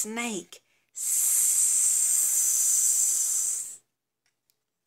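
A woman hisses loudly through clenched teeth.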